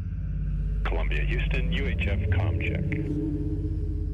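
A man speaks calmly through a headset microphone.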